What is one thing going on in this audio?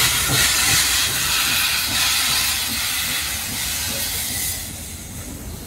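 Steam hisses loudly from a steam locomotive.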